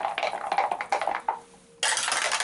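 Dice clatter down through a plastic dice tower.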